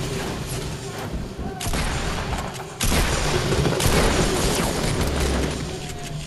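Gunshots crack in rapid succession.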